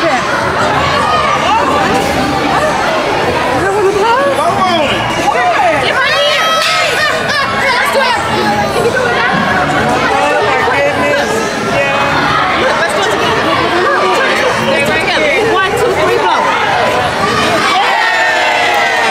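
A group of women and children sing together nearby.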